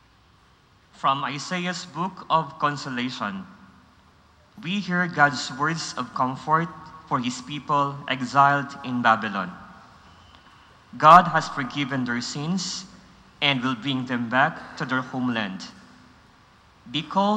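A man reads out through a microphone in a large echoing hall.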